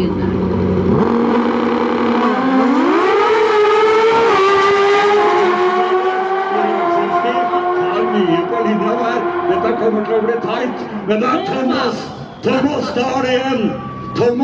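Two racing motorcycles roar away at full throttle, their engines rising in pitch through the gears and fading into the distance.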